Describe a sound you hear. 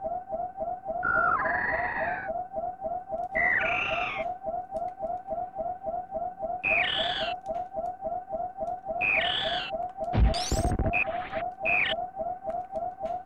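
A giant creature in a video game screeches in bursts.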